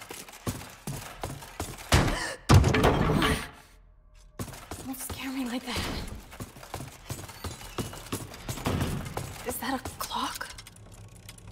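Heavy armoured footsteps clank.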